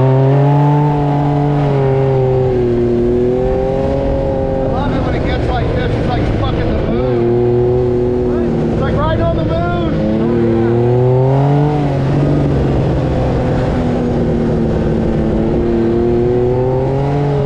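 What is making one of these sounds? An engine roars loudly, its pitch rising and falling as it revs.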